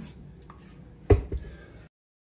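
A metal mixer head clicks and clanks against a bowl.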